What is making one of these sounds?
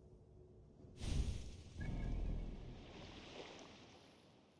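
A soft whoosh and rumble sound as a game menu switches to a map.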